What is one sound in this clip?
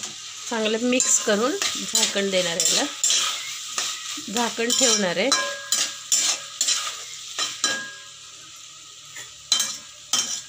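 A metal spatula scrapes and clatters against a metal pot.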